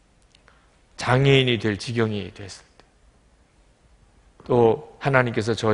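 A middle-aged man speaks calmly and slowly into a microphone.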